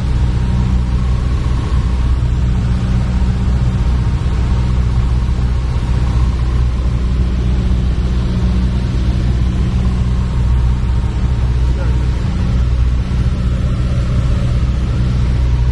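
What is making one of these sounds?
A small propeller plane's engine drones loudly and steadily from inside the cabin.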